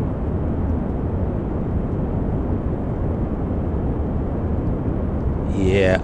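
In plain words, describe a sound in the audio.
Rocket engines roar steadily with a deep rumble.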